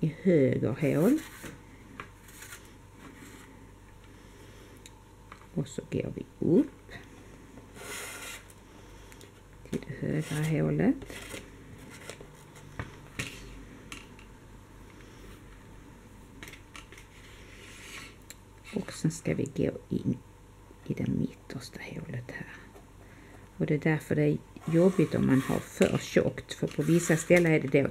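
Cardboard rustles and scrapes.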